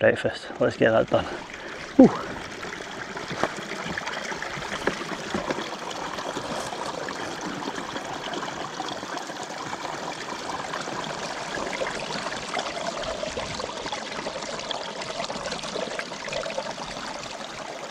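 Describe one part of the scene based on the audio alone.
A stream trickles and splashes over rocks close by.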